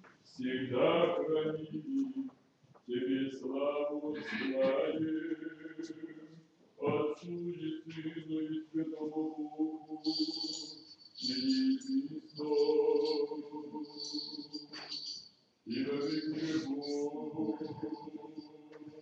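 A man chants in a slow, sustained voice, echoing through a large reverberant hall.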